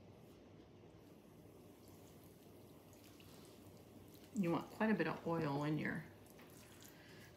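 Food sizzles faintly in a frying pan.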